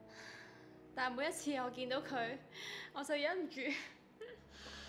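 A young woman speaks softly and emotionally close by.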